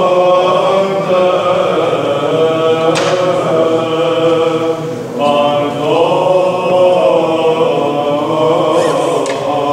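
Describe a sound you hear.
Men chant together in a steady, echoing hall.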